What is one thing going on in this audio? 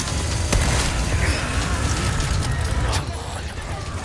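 A chainsaw roars close by.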